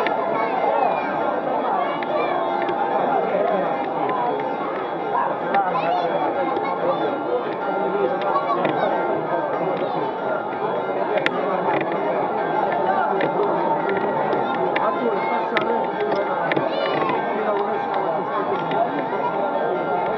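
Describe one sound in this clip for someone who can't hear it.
A large crowd chatters and calls out all around, outdoors.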